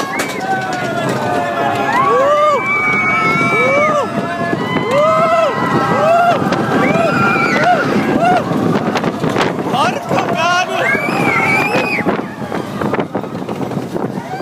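Wind rushes past a moving roller coaster.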